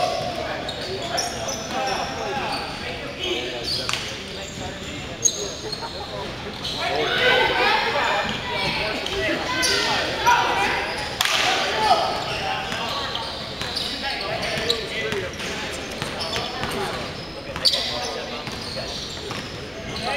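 Young men call out to each other in a large echoing gym.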